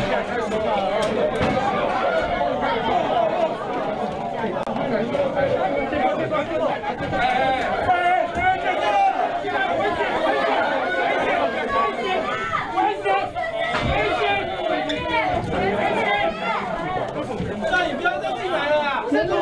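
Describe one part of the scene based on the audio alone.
A crowd of men and women chatter loudly and excitedly in an echoing room.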